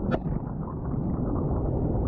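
Water gurgles and rumbles underwater.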